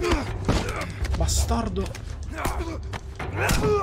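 Blows and scuffling sound in a close struggle.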